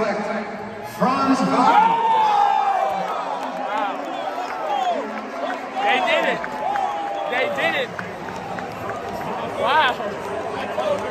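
A crowd erupts into loud cheering and shouting.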